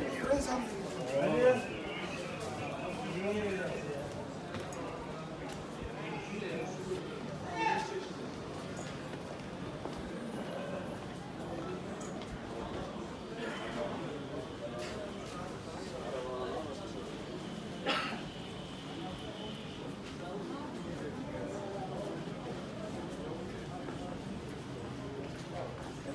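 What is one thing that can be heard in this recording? Footsteps shuffle on stone paving.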